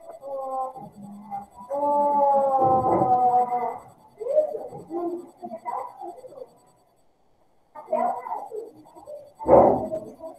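A woman speaks calmly through a computer microphone on an online call.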